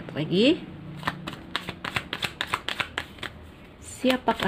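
Playing cards riffle and flick quickly while being shuffled by hand.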